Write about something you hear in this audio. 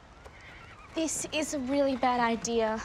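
A young woman speaks brightly and in a high voice nearby.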